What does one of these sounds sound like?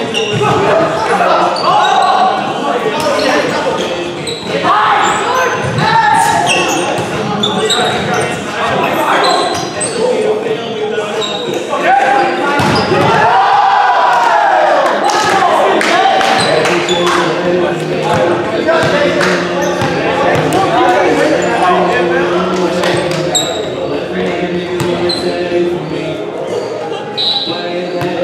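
Young men shout and call to each other across the court.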